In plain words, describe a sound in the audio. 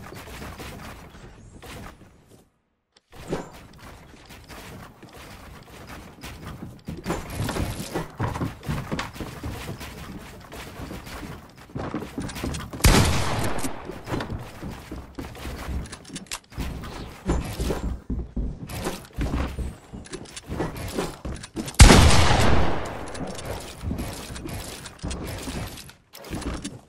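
Wooden building pieces clack into place in a video game.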